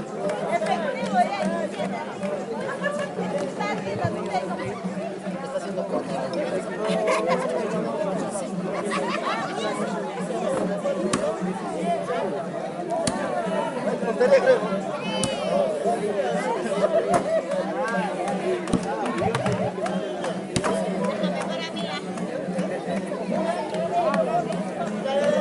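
A band plays flutes and strummed guitars outdoors.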